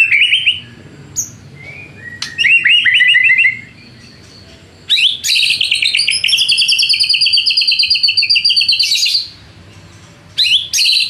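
A songbird sings loud, rich, warbling phrases close by.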